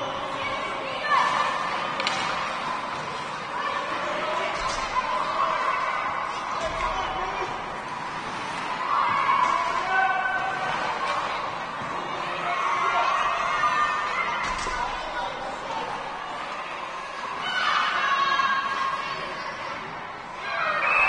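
Children shout and call out across an echoing rink.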